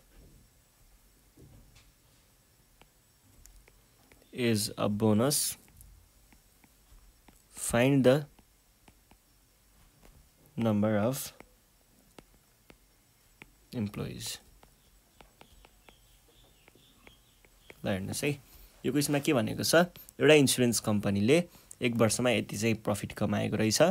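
A stylus taps and scratches faintly on a tablet.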